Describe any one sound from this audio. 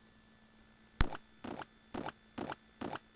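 An arcade game's tiles tumble with short electronic blips.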